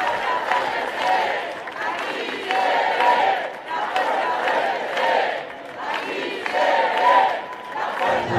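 A large crowd of men and women sings together loudly in rhythmic waves.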